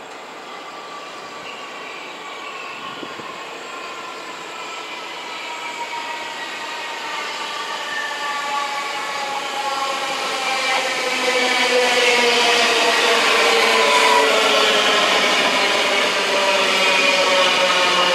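Train motors whine, their pitch slowly falling as the train passes.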